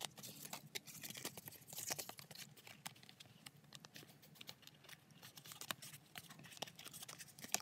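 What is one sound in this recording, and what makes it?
Thin metal foil crackles as hands bend it.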